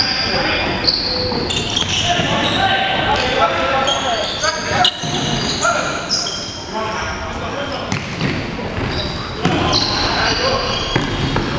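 A ball thuds off a foot.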